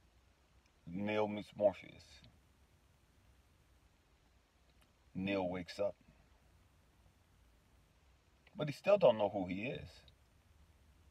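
A man speaks close up in short, relaxed bursts with pauses between.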